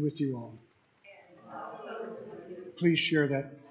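A congregation murmurs a response together.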